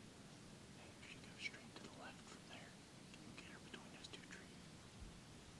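Dry leaves rustle and crunch under a deer's hooves.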